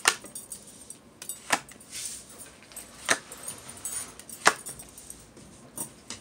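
Cards are laid down on a cloth with soft taps.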